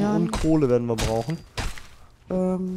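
A blade chops into a carcass with wet, heavy thuds.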